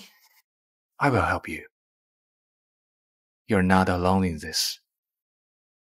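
A young man speaks softly and reassuringly, close by.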